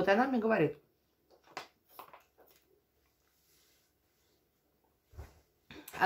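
A woman drinks water from a bottle with soft gulps.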